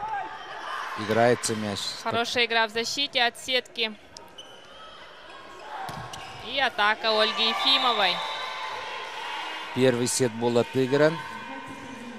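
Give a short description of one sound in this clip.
Young women players shout during the rally in an echoing hall.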